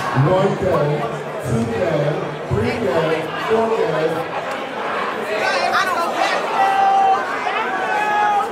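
A crowd chatters and cheers in the background.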